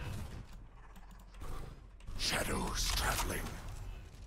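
A shotgun is drawn and cocked with a metallic clack.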